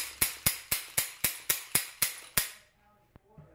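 Metal clicks rapidly in a quick, even series.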